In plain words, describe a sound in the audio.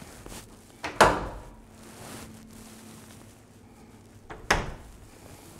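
A door bumps and thuds as it is pushed open.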